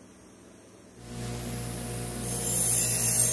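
A buffing wheel spins with a loud, rising whirr.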